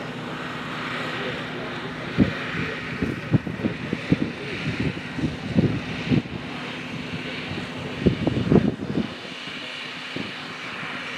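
A small model airplane engine buzzes steadily overhead.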